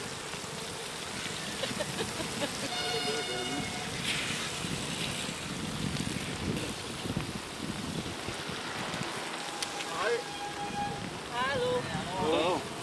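Bicycle tyres hiss steadily on a wet road.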